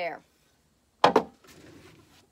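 A tile knocks down onto a saw table.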